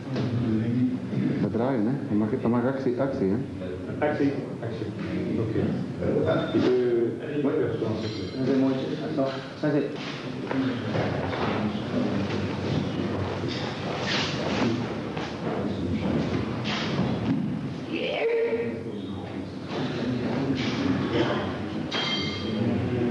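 A middle-aged man speaks calmly and steadily, as if explaining.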